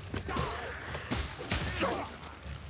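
Metal weapons clash and clang in a fight.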